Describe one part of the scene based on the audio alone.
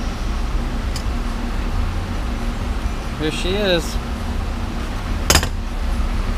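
Small metal bolts clink together in a hand.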